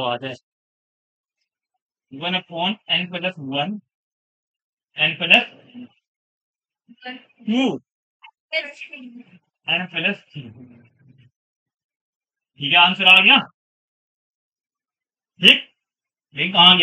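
A young man explains calmly and clearly, close by, in short bursts with pauses.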